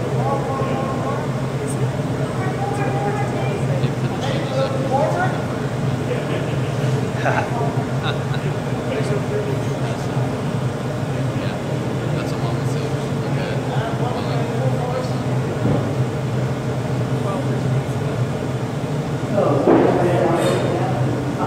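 A furnace roars steadily.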